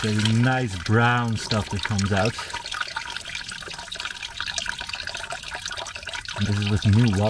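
Oil pours steadily from a drain and splashes into a metal pan.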